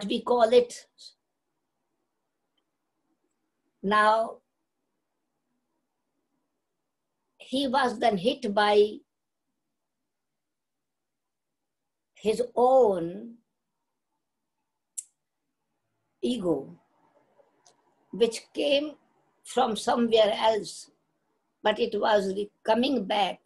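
An elderly woman speaks calmly and slowly into a microphone, with long pauses.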